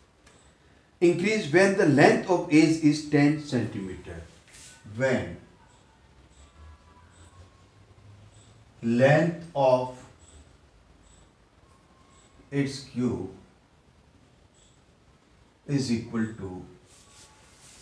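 A middle-aged man speaks calmly in short bursts, close by.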